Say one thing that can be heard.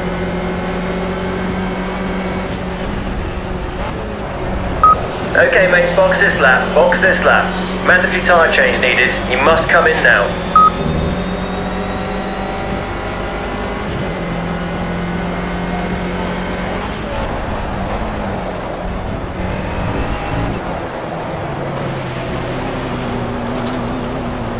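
A racing car engine drones and revs steadily.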